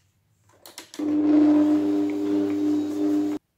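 An electric meat grinder hums steadily.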